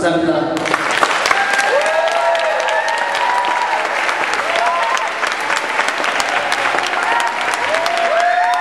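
A crowd applauds steadily in a large room.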